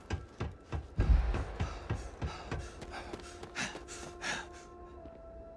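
Heavy footsteps thud quickly on hard ground.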